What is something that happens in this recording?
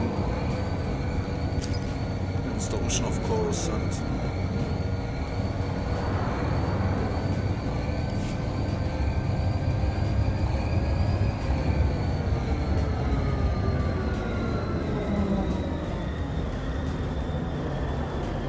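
A hovering speeder hums steadily with a low engine drone.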